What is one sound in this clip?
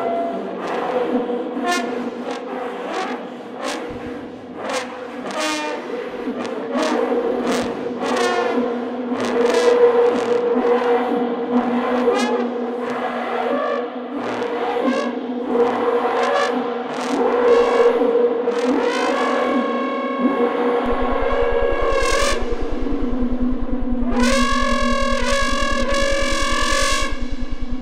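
Two trombones play long, droning notes with sharp, clicking accents, close by.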